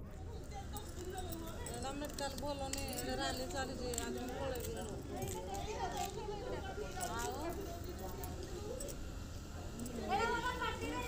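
Several women talk quietly nearby, outdoors.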